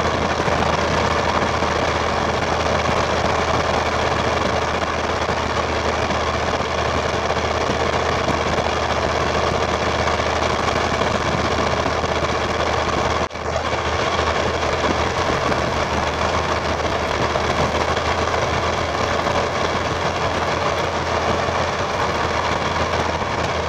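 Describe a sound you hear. A turbocharger whistles on a diesel pickup.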